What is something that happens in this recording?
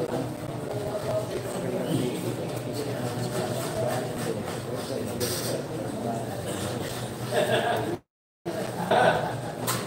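A crowd of young people chatters in the background.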